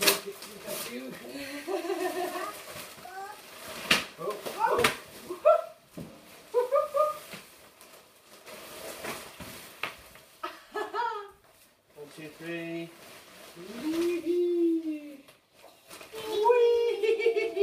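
A pop-up play tent rustles and flaps as it springs open.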